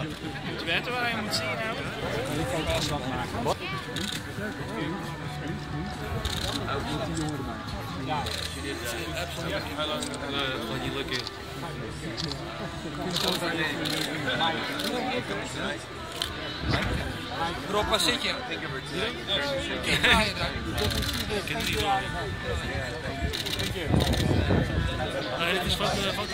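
A crowd chatters all around outdoors.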